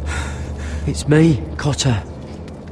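A young man answers gently, close by.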